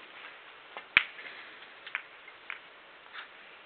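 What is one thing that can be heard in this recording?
Billiard balls knock against each other on a table.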